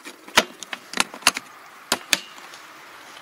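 Plastic toolbox latches snap and click sharply.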